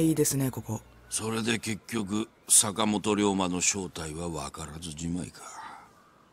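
A middle-aged man speaks calmly and gravely, close by.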